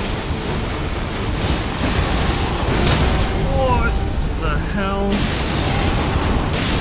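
A deep, heavy rumbling roars on with booming crashes.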